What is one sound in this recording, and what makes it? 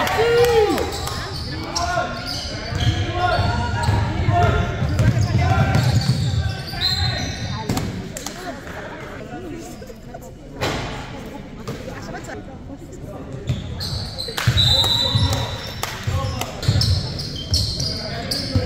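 Young men shout and call out to each other across the gym.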